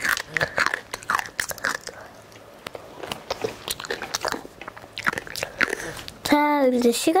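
A young girl makes soft crunching and smacking mouth sounds close to a microphone.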